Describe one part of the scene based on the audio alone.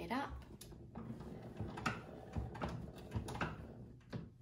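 A phonograph crank is wound, its spring mechanism clicking and ratcheting.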